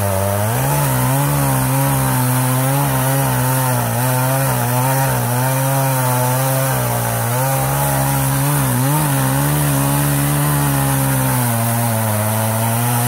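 A chainsaw chain rasps through wood.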